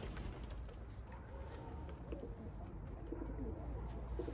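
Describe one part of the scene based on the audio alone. Pigeons coo softly nearby.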